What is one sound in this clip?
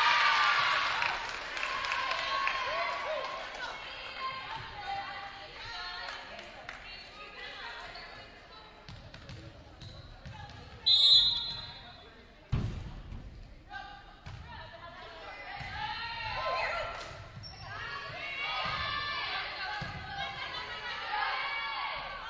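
Girls shout and cheer across a large echoing gym.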